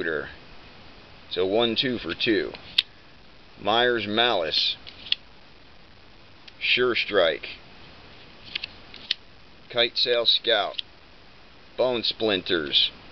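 Playing cards tap and slide against each other.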